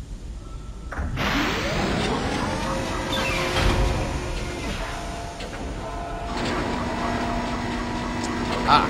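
A heavy machine starts up with a rising mechanical whine and keeps humming.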